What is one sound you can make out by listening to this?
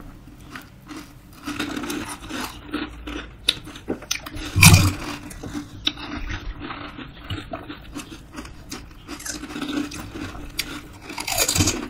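Young women chew and slurp wetly close to a microphone.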